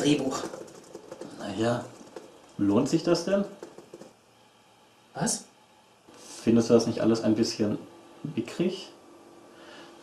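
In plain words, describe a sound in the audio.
A young man speaks calmly and questioningly, close by.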